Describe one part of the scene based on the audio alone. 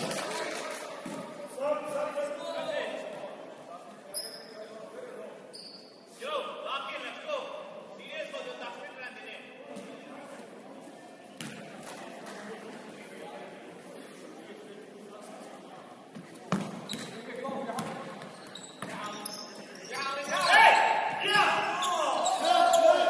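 Voices of players and onlookers call out and shout in a large echoing gym.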